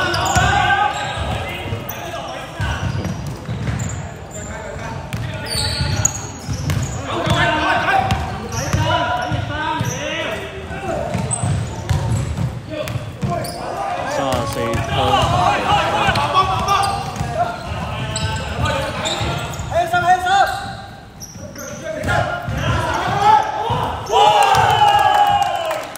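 Sneakers squeak on the floor.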